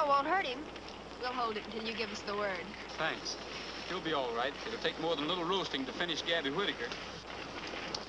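A man speaks earnestly.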